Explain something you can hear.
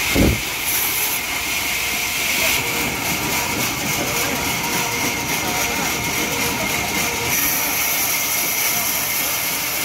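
A band saw whines steadily as it cuts through a log.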